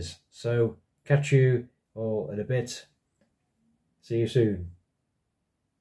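A man speaks calmly and close, as if into a microphone.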